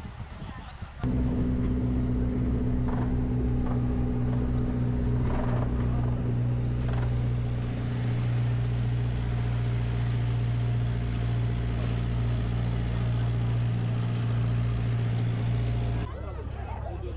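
A motor engine hums steadily up close.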